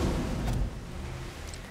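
A magical energy blast whooshes and crackles.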